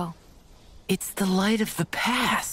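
A young man speaks softly.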